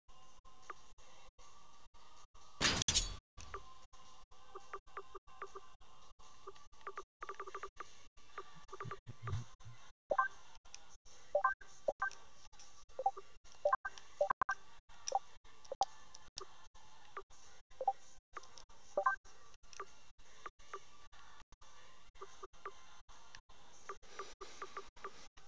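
Short electronic menu blips sound as selections change.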